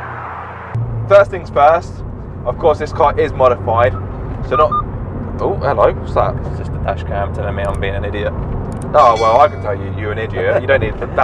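A man talks with animation inside a car.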